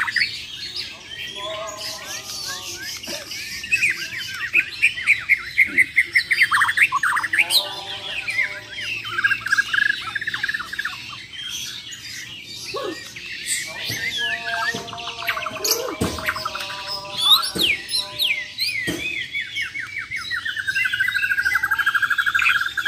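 Several caged songbirds sing loud, rapid chirping songs outdoors.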